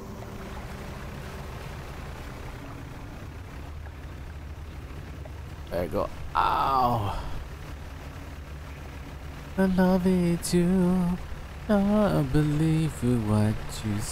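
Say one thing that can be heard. A boat motor hums low and steady.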